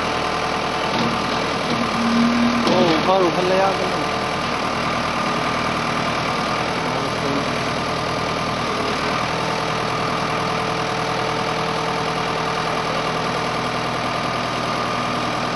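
A tractor engine runs steadily with a loud rumble.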